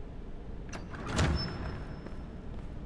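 A heavy iron door creaks open.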